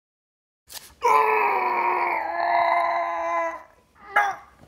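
A young man cries out in pain, long and loud.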